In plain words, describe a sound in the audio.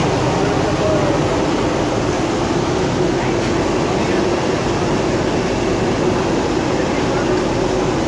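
A metal skimmer scrapes against a pan.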